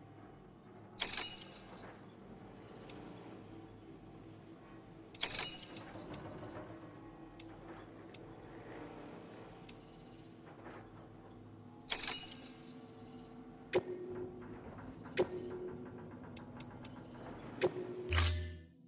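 Short electronic menu beeps sound now and then.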